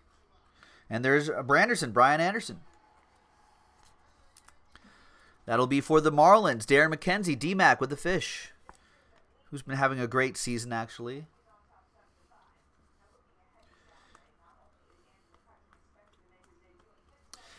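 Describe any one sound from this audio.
Trading cards rustle and slide in a man's hands.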